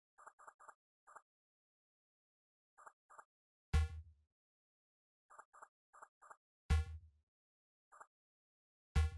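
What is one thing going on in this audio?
Short electronic blips sound as a game menu cursor moves.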